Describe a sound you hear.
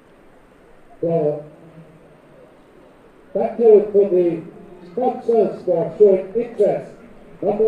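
A man speaks loudly and close by.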